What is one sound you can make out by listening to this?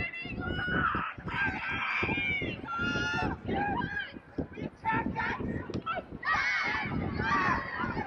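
Young women shout and call to each other outdoors.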